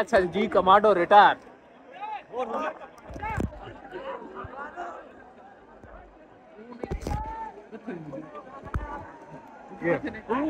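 Young men and women shout and call out excitedly outdoors.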